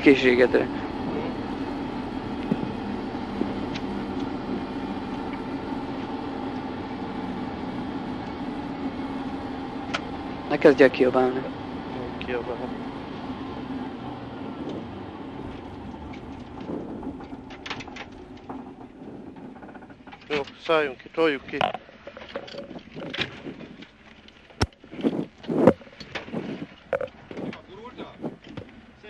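A rally car engine drones loudly from inside the cabin, then slows to idle.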